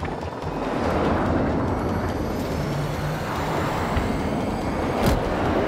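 A jet engine whines and rumbles as it spools up.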